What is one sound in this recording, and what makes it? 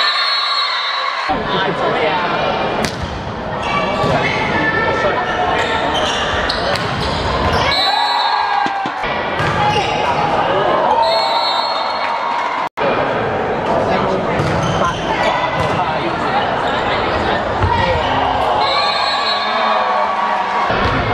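A crowd of girls cheers and shouts in a large echoing hall.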